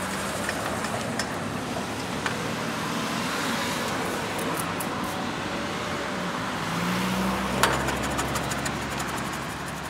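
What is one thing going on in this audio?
A car drives past close by.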